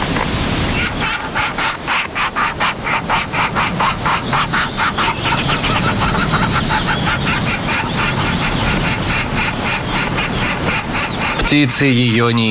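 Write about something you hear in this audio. A woodpecker taps rapidly on a tree trunk.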